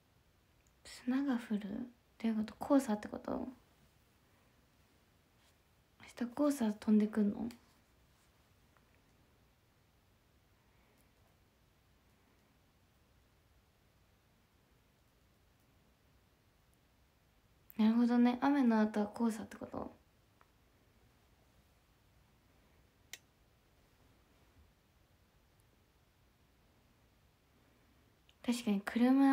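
A young woman talks calmly and close by in short bursts, heard through a microphone.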